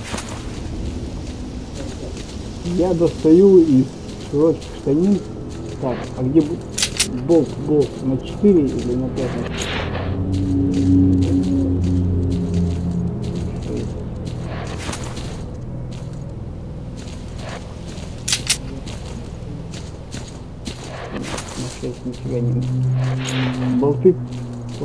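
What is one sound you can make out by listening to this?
Metal gear clicks and rattles as a gun is drawn.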